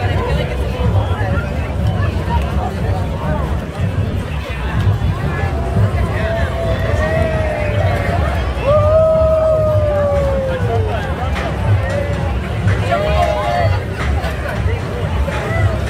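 A large crowd of men and women chatters and talks nearby outdoors.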